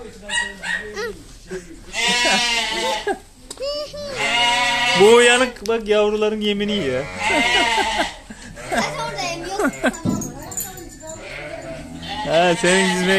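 Sheep bleat loudly and repeatedly close by.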